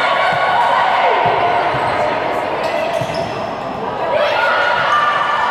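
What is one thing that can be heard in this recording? Sneakers squeak sharply on the court floor.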